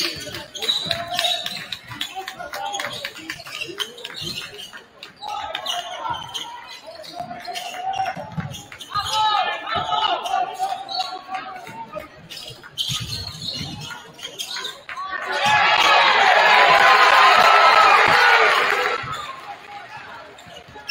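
A crowd murmurs and calls out.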